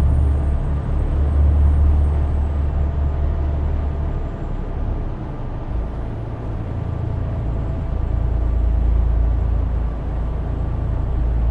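A truck engine rumbles steadily, with a low drone that dips and rises.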